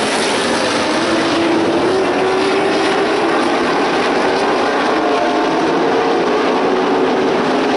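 An engine drones with a rising and falling pitch as a race car passes close by.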